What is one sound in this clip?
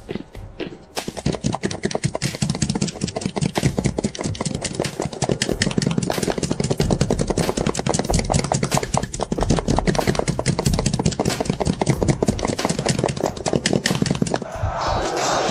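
Many horses gallop in a fast, thundering rush.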